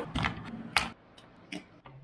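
A light switch clicks.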